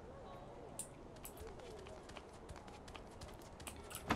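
Footsteps thud softly across a floor.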